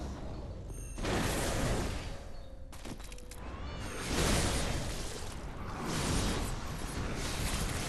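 A monstrous creature lashes out with rushing, whooshing sweeps.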